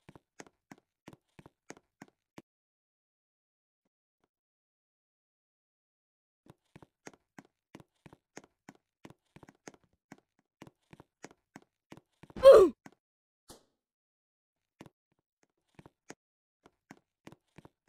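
Quick, light footsteps patter on the ground.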